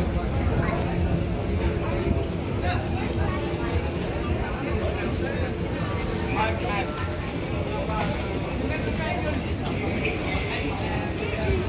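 Footsteps shuffle on a stone street.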